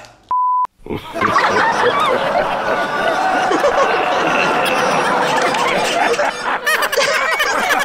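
A man screams and shouts loudly and harshly.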